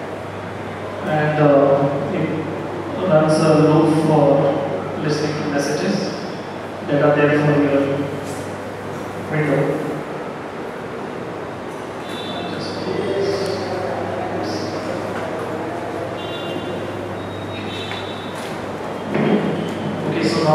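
A man speaks calmly to an audience in a room with some echo.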